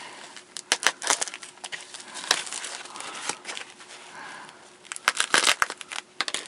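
Hands crinkle and rustle a sheet of plastic wrap.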